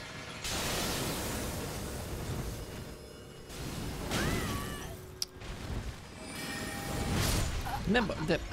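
Magic spells whoosh and crackle loudly.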